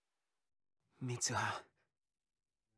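A young man speaks softly, close by.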